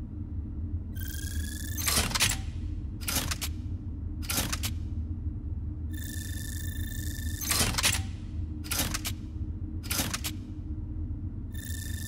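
Short electronic whooshes and chimes sound again and again.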